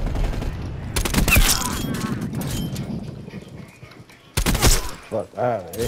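A rifle fires sharp, loud shots.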